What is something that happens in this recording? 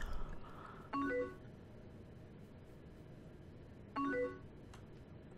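A short instant-message alert chime sounds.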